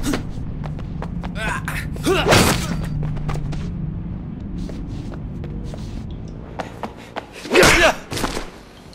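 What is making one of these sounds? Punches thud as two men brawl.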